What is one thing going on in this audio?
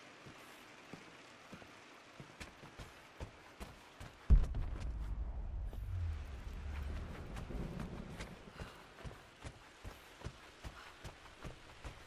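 Footsteps patter on a wooden floor.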